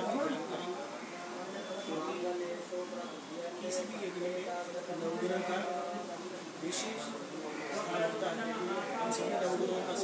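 A middle-aged man chants steadily, close by.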